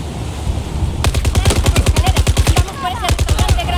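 A rifle fires a rapid burst close by.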